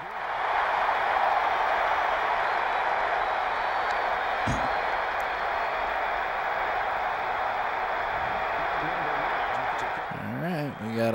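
A large crowd cheers and roars steadily.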